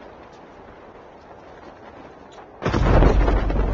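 Wind rushes steadily past during a parachute descent.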